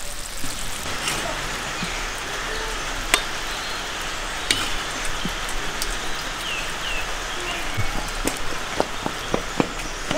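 A metal ladle scrapes inside a cast-iron cauldron.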